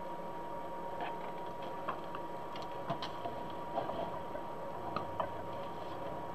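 Deco mesh ribbon crinkles as hands twist it.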